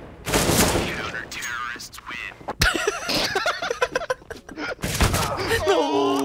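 Gunshots bang sharply in quick bursts.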